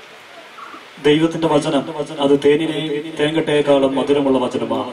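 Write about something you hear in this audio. A choir of men and women sings together through loudspeakers.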